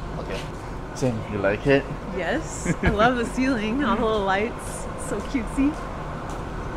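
A young woman talks cheerfully and laughs close by.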